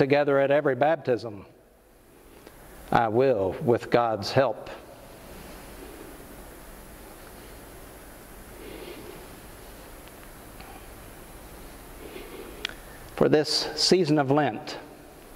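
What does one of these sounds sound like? An elderly man speaks calmly into a microphone, in bursts with long pauses.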